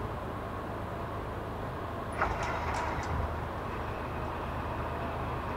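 A freight train rumbles along the tracks toward the listener.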